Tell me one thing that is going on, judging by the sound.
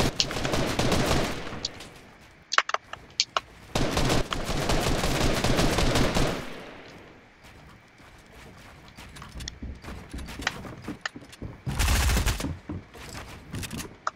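Wooden building pieces snap into place with sharp clicks.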